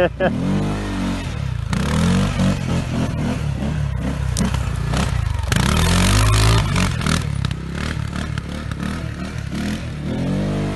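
Knobby tyres spin and spray loose dirt.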